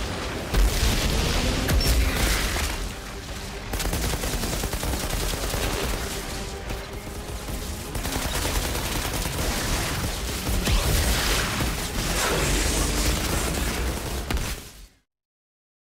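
Guns fire in rapid bursts with loud blasts and explosions.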